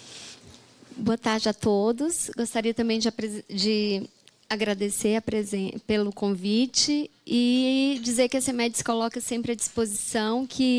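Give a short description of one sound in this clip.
A woman speaks steadily into a microphone.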